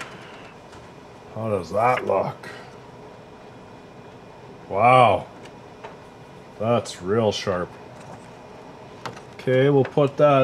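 Paper rustles softly as hands handle a printed sheet.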